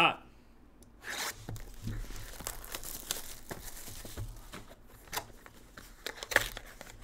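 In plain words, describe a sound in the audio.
Plastic wrapping crinkles and tears as hands open a box.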